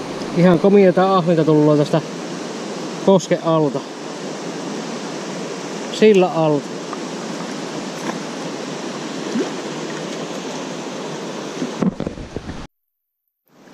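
Water laps gently against the stones.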